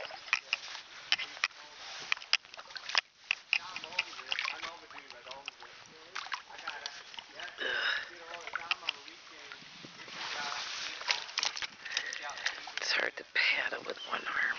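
Water laps gently against a kayak hull.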